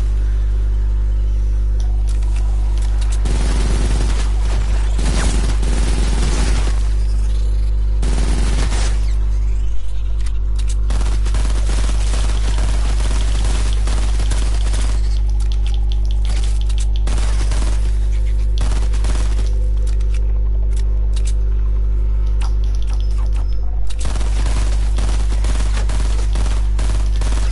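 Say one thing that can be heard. Guns fire in rapid bursts with sharp cracks.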